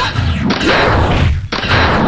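A video game fireball bursts with a fiery whoosh.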